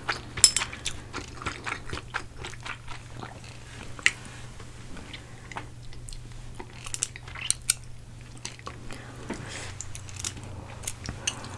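Noodles squelch and slap as chopsticks lift them from bowls.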